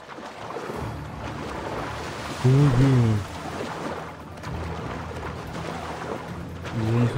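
Water splashes and sloshes around a swimmer.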